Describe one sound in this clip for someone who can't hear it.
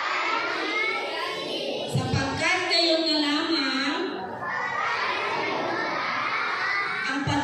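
A woman reads out to a group, heard from nearby.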